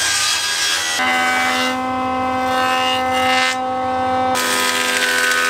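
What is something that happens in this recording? A jointer whirs steadily as wood is pushed across it.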